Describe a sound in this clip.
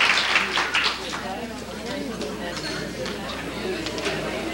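A crowd chatters and murmurs.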